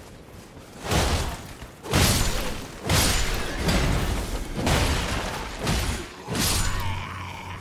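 Heavy weapon blows strike and slash in a fight.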